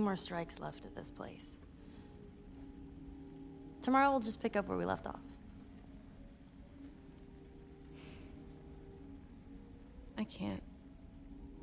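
A teenage girl speaks quietly, in short phrases with pauses.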